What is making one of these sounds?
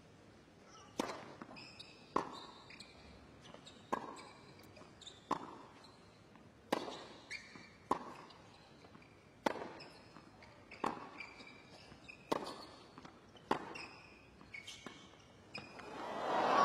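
Tennis balls are struck back and forth with sharp pops in a rally.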